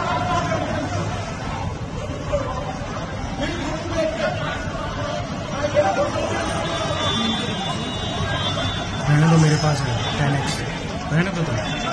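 A crowd of men shouts and argues outdoors at a distance.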